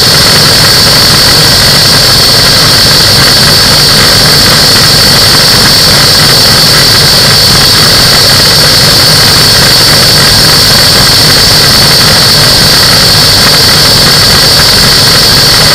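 A small aircraft engine drones loudly and steadily.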